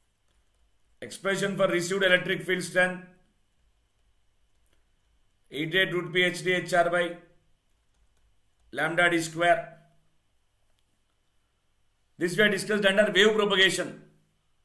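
A man lectures calmly into a close microphone, in short bursts with pauses.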